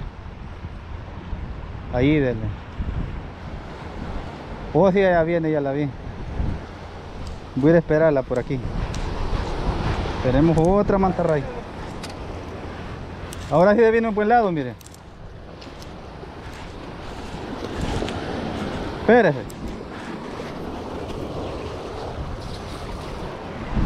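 Waves wash and break against rocks on the shore.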